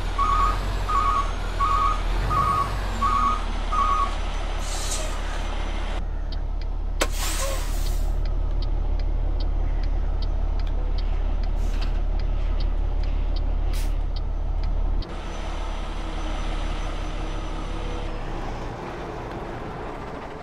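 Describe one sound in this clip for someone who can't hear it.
A truck's diesel engine idles with a low steady rumble.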